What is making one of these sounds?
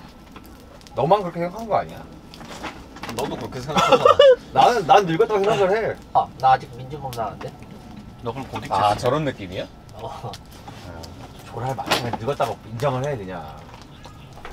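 Young men chat and laugh together nearby.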